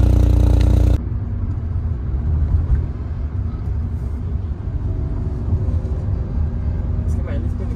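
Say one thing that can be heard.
A car engine hums quietly from inside the moving car.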